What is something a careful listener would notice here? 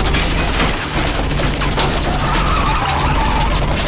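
Bullets clang against a car's metal body.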